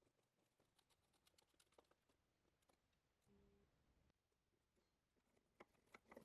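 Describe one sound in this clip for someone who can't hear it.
A screwdriver squeaks as a screw is driven into wood.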